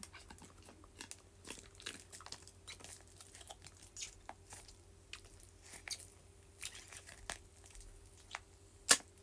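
A plastic drink pouch crinkles in a hand close by.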